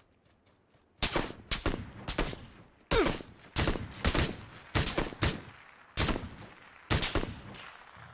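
Rifle shots crack sharply, one after another.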